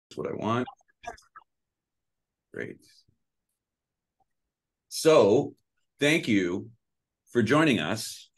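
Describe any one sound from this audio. A man speaks calmly through an online call microphone, in short phrases with pauses.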